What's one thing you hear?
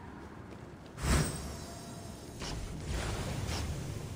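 A magical whoosh bursts out and then fades.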